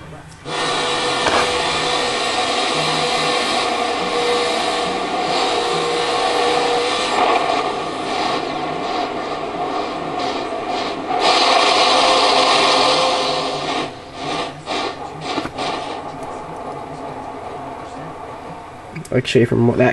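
A racing car engine roars steadily through loudspeakers.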